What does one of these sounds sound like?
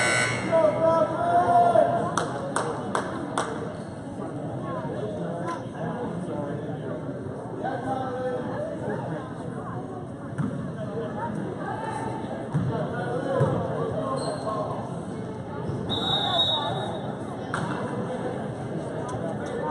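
Sneakers squeak on a gym floor as players run.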